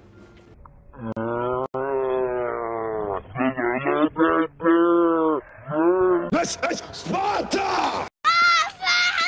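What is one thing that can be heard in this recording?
A young boy screams and shouts loudly.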